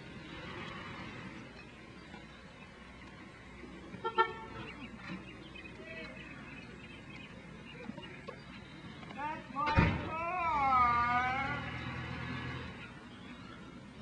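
A car drives slowly past outdoors.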